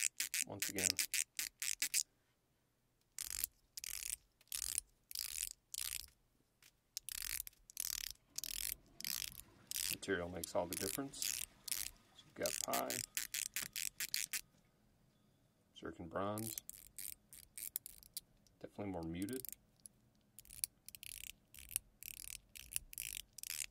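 Small hard plastic objects click and rattle together in someone's hands, close up.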